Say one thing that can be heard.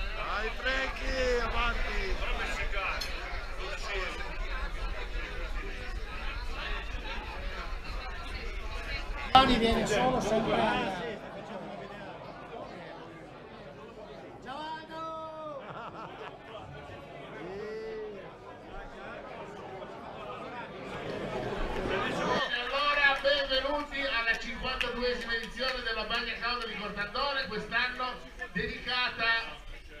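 A crowd of adults chatters in a large room.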